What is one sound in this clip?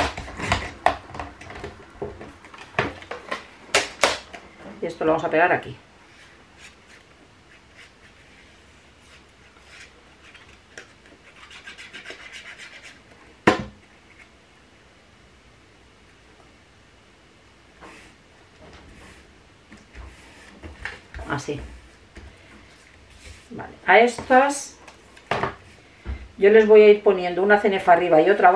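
Paper rustles and taps on a table.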